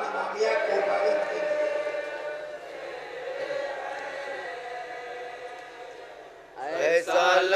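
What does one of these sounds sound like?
A group of men chant together through a loudspeaker.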